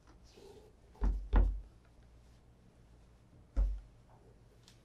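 Leather shoes knock lightly against a wooden table.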